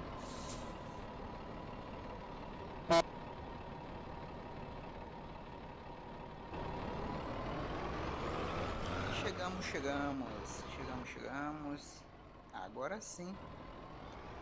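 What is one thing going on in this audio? A truck engine hums steadily, rising in pitch as the truck speeds up.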